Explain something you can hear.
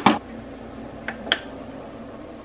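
A button on a coffee machine clicks.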